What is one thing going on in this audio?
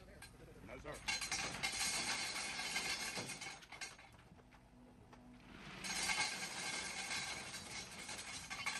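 Gravel pours and rattles out of a digger bucket.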